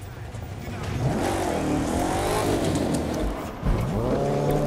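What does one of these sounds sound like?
A car engine revs up and down loudly.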